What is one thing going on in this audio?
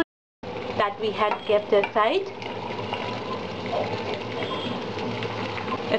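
Potato pieces drop into a pan with a soft clatter.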